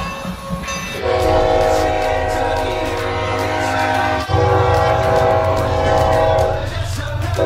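A diesel locomotive sounds its loud horn in long blasts.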